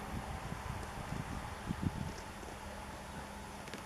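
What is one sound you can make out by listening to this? Footballs thud softly as they are dropped onto turf.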